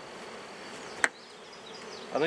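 A wooden hive cover knocks down onto a box.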